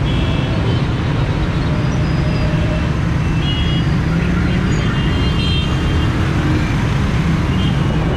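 Traffic of rickshaws and motorbikes drones along a busy road.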